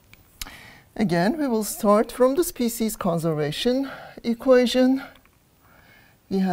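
An elderly woman speaks calmly and clearly, close by.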